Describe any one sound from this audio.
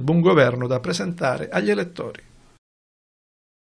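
A man speaks briskly, close to a microphone.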